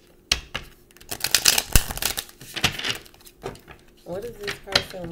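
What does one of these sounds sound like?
Playing cards riffle and flutter quickly as they are shuffled close by.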